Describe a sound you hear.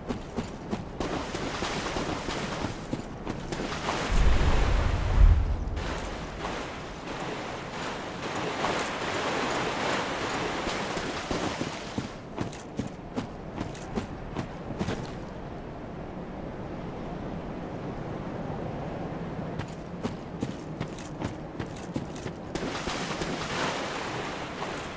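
Feet splash quickly through shallow water.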